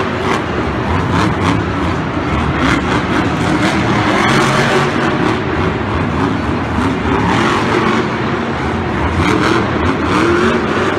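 Large tyres spin and skid on dirt.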